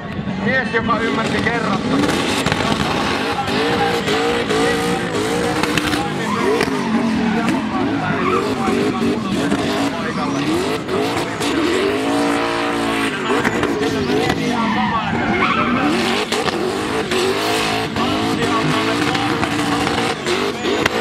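A car engine revs hard, rising and falling rapidly.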